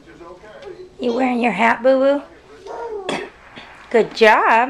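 A toddler girl squeals close by.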